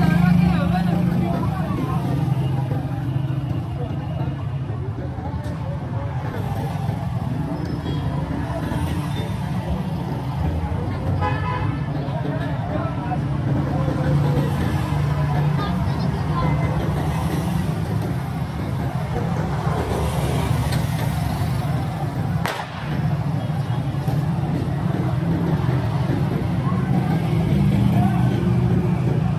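Motorcycles ride past on a street outdoors.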